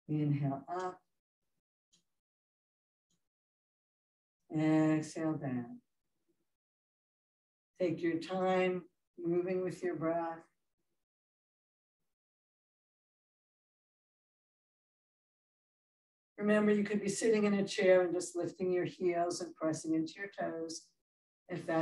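A woman speaks calmly and clearly, pausing between phrases.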